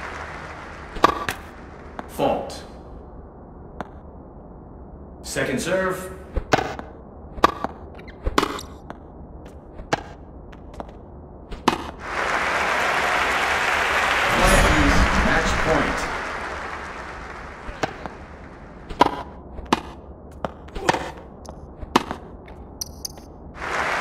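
Tennis balls are struck with rackets in sharp pops.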